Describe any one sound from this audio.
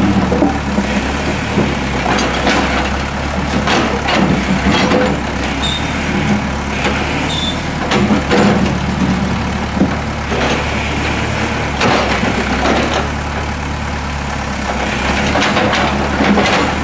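A diesel backhoe engine rumbles steadily nearby.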